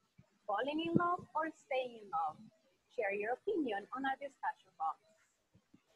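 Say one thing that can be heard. A woman speaks clearly and with animation through a computer's speaker.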